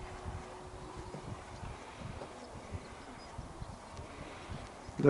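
Wind gusts and rumbles across an exposed open place outdoors.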